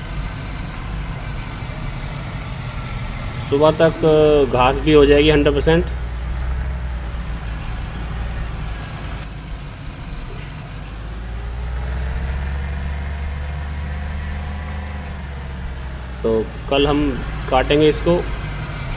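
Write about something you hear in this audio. A car engine hums steadily and revs as the car drives.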